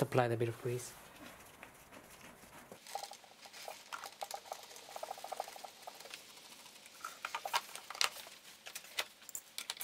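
A plastic engine air box cover clicks and rattles under a hand.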